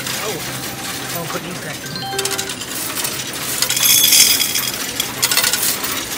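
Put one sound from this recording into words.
A machine's coin counter rattles and whirs.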